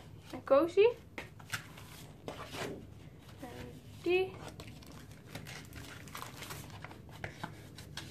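Sheets of paper rustle and flap as they are leafed through.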